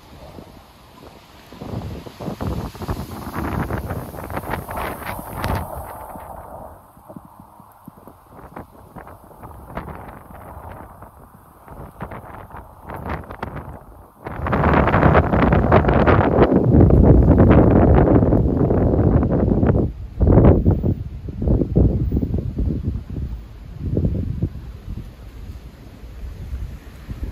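Wind gusts loudly outdoors.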